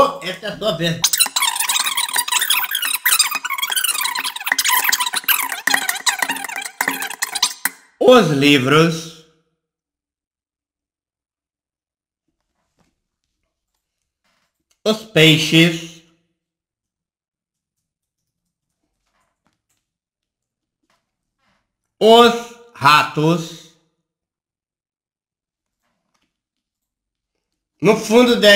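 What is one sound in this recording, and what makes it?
A man speaks calmly into a close microphone, in short bursts with long silences.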